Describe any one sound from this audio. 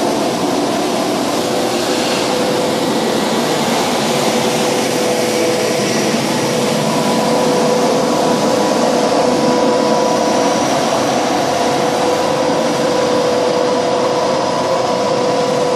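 A street sweeper's fan whines steadily.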